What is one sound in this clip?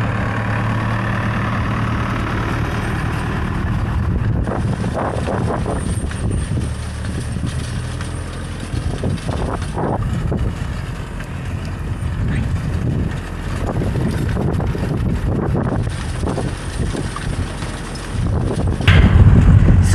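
A seed drill rattles and scrapes through the dry soil.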